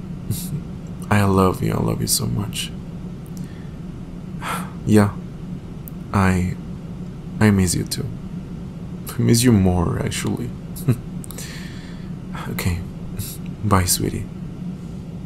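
A young man speaks softly and close to a microphone.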